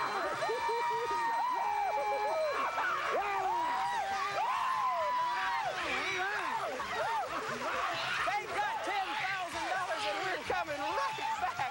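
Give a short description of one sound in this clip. An audience claps loudly.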